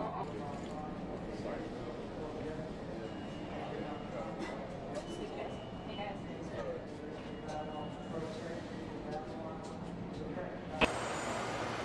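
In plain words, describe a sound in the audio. A crowd of men and women murmurs in an echoing underground hall.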